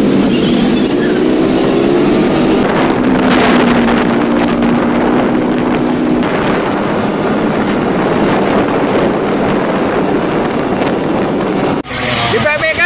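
Motorcycle engines hum steadily while riding along a road.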